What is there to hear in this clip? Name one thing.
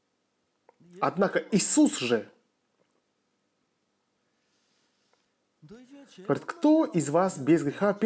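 An elderly man speaks calmly and formally into a microphone, with pauses.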